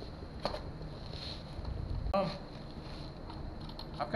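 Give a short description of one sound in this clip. A rubber bicycle tyre rubs and squeaks under a man's hands.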